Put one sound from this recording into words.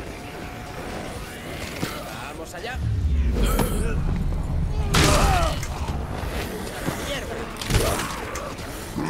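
Blows thud and smack against zombies in a fight.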